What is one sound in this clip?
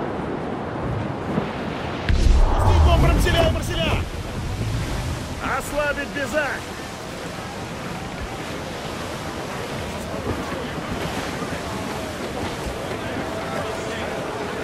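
Waves rush and splash steadily against a sailing ship's hull.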